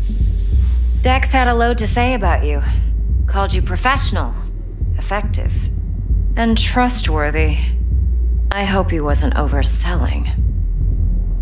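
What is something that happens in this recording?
A woman speaks slowly and calmly, close by.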